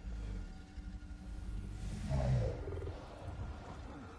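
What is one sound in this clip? A huge beast growls deeply.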